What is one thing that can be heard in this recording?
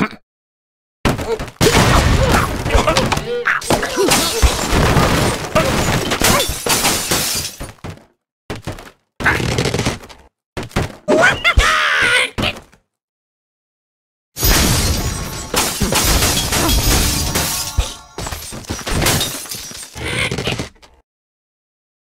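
Wooden and stone blocks crash and tumble as structures collapse.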